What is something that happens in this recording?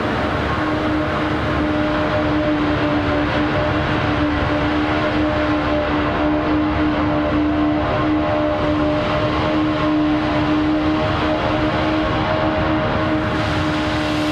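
A sports car engine drones steadily at speed.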